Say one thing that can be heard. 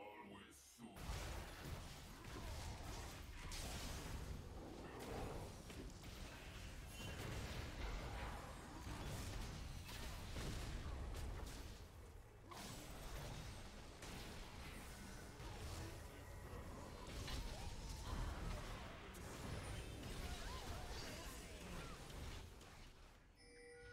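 Magic blasts, whooshes and impacts from a video game crackle loudly.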